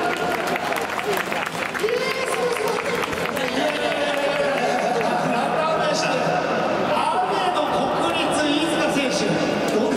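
A man speaks into a microphone over a loudspeaker, with animation.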